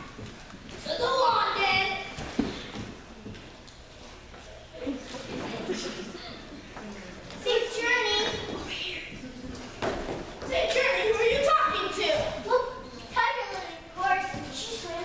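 Young children speak their lines loudly, heard from across an echoing hall.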